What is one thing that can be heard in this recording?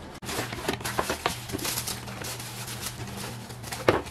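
Cardboard rustles as a box is opened.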